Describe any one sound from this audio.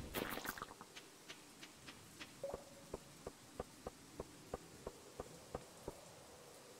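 Light footsteps tick quickly and evenly in a game.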